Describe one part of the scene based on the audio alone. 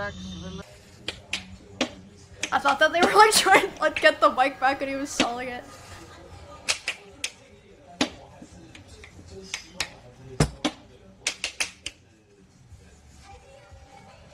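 A plastic lid clicks and rattles on a container.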